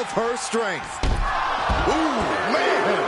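A body thuds heavily onto a wrestling mat.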